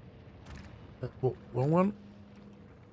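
A young man speaks briefly into a close microphone, his voice rising.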